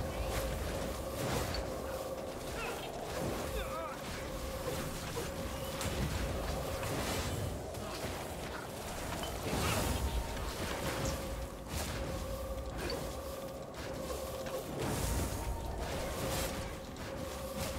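Spell blasts and impacts crackle and boom in quick bursts.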